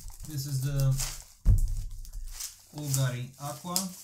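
A cardboard box is set down on a wooden table.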